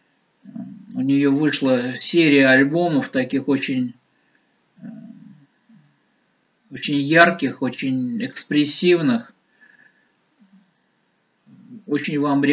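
A middle-aged man speaks calmly and close to a microphone, with pauses.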